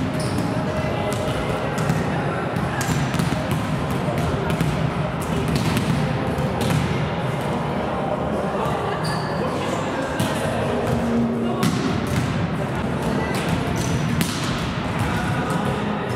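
A volleyball is struck with a sharp slap in a large echoing hall.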